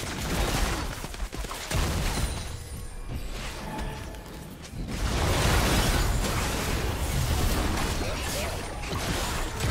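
Game spell effects whoosh and crackle during a battle.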